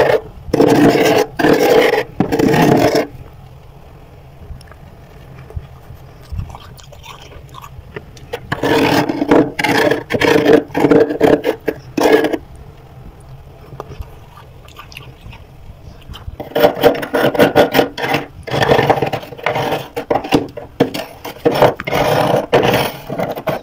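A metal spoon scrapes across freezer frost.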